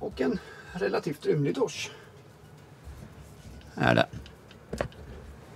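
A middle-aged man talks casually, close by.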